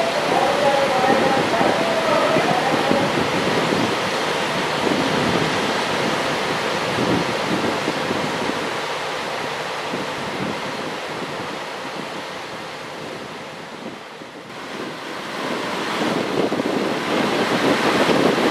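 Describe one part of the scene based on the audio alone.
A diesel railcar rumbles loudly as it rolls slowly along the track.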